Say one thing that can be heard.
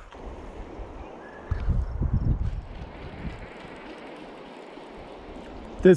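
A fishing reel whirs as its handle is turned.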